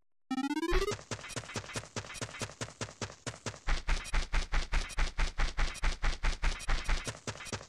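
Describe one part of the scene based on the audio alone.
Quick light footsteps patter on grass.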